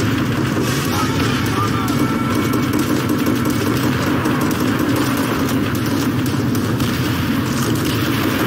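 Gunfire crackles in the distance.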